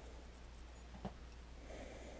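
A small plastic device clicks as it is picked up and handled.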